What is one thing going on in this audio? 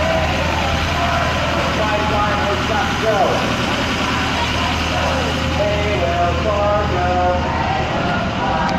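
Vehicle engines rumble steadily in busy traffic.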